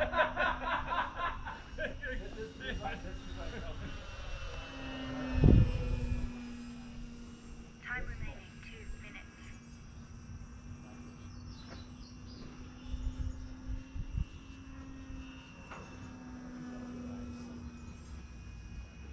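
A small propeller aircraft engine drones steadily overhead.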